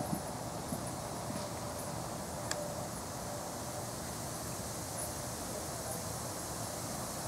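A horse's hooves thud softly on sand at a canter.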